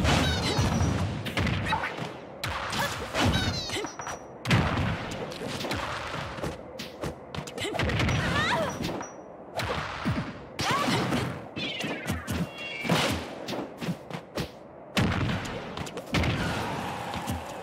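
Game fighters hit each other with sharp thuds and blasts.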